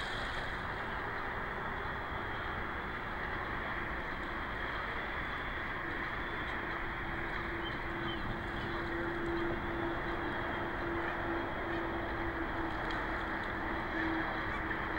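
Water laps gently, outdoors in a steady breeze.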